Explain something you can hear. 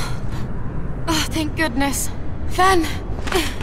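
A young woman speaks warmly and with relief.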